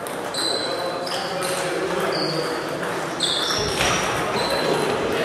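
Ping-pong balls click against paddles and tables in an echoing hall.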